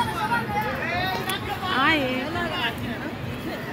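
Young people on a swing ride chat and laugh nearby.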